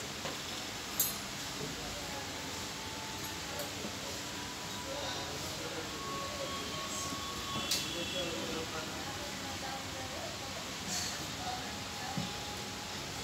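Plates and cutlery clink lightly as they are set on a table.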